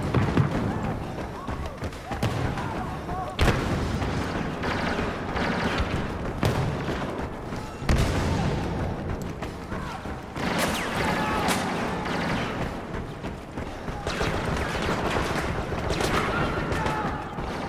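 Footsteps run across a hard metal floor.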